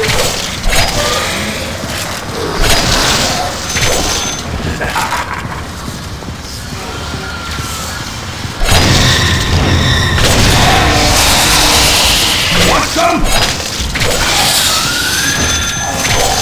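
Blades swish and slash with wet, fleshy hits.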